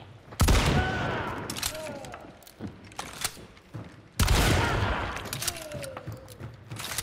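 Gunshots boom loudly and echo.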